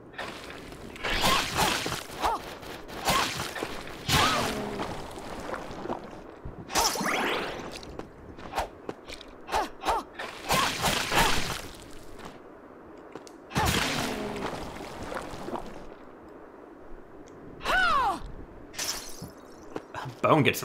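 Sword slashes and hits ring out sharply in a video game.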